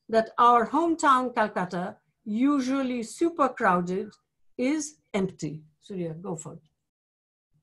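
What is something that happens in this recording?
An elderly woman speaks calmly through an online call.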